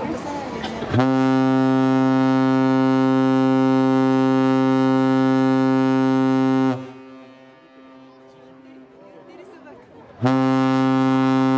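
A ship's horn sounds long, deep, steady blasts.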